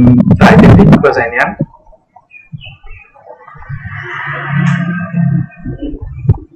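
A young man speaks with animation into a microphone, close up.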